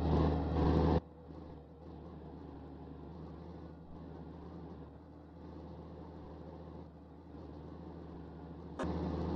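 A truck's engine drones more quietly from outside, behind the truck.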